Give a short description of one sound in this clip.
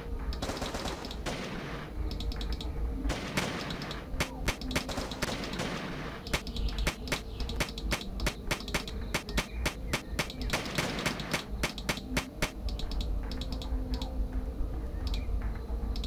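Explosions boom and crackle in quick bursts.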